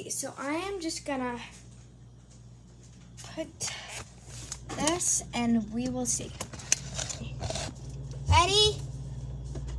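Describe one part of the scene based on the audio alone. A young girl speaks with animation close to the microphone.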